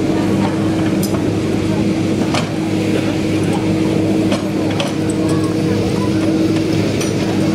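Metal parts of a gun carriage clank and knock.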